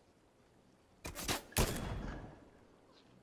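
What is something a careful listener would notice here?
A rifle shot cracks loudly and echoes briefly.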